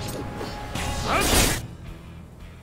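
An energy blast bursts with a loud crackling whoosh.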